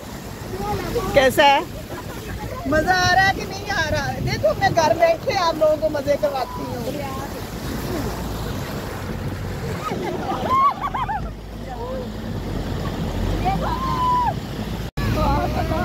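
Water splashes and churns loudly against the side of a moving vehicle.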